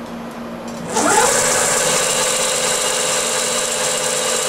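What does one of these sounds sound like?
A cutting tool grinds loudly into spinning metal.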